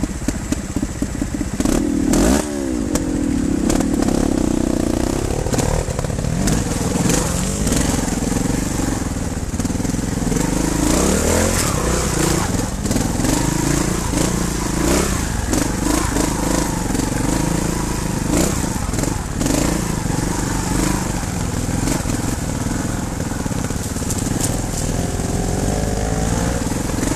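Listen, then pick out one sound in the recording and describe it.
Rocks and stones knock and rattle under motorcycle tyres.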